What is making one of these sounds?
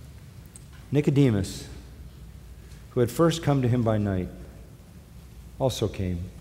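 An elderly man speaks slowly and earnestly through a microphone, with pauses between phrases.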